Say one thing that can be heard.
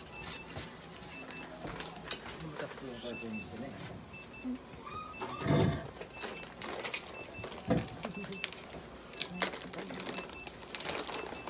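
A small electronic device beeps in short, repeated pairs.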